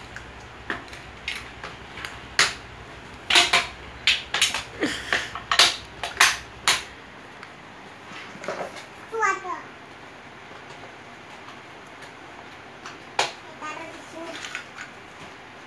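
Hard plastic parts click and snap together.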